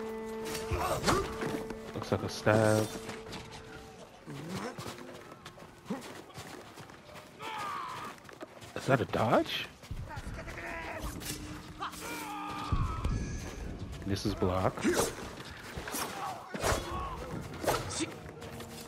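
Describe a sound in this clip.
Steel swords clash and ring sharply.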